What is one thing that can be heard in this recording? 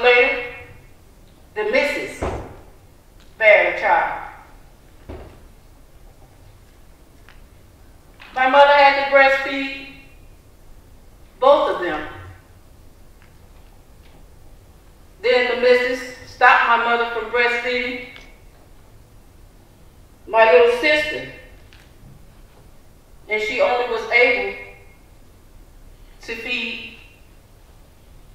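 A woman sings through a microphone in short phrases with long pauses.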